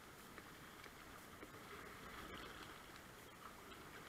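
A paddle blade splashes into the water.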